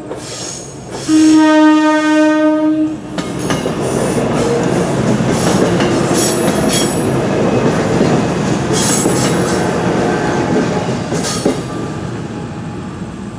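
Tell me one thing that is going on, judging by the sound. A mechanical crossing bell clangs.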